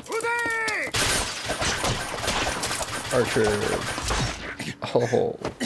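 A volley of crossbows fires with a sudden rush of noise.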